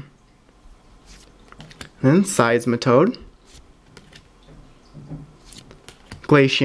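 Stiff playing cards slide and flick against each other.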